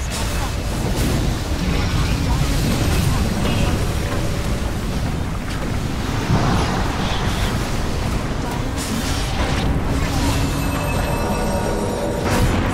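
Magic blasts and explosions crackle and boom in a fast video game battle.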